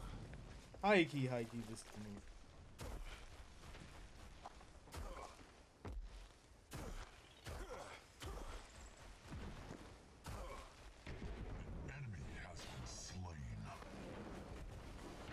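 Heavy footsteps thud quickly on the ground.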